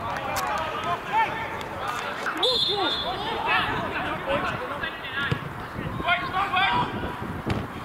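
Men shout and call out across an open outdoor pitch.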